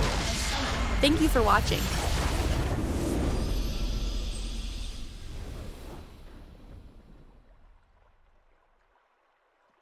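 A triumphant victory fanfare plays and fades.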